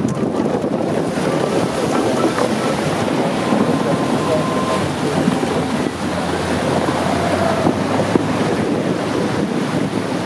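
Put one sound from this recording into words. Water splashes and sprays as tyres plough through a river.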